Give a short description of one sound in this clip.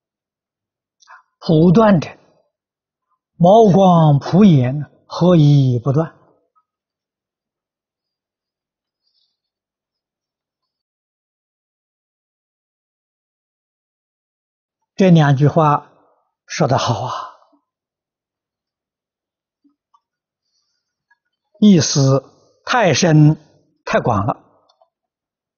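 An elderly man speaks calmly and slowly, close to a microphone, with long pauses.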